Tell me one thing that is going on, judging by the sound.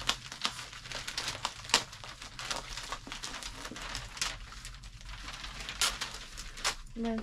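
Paper and plastic bags crinkle and rustle as they are handled.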